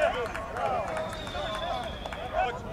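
A referee's whistle blows once.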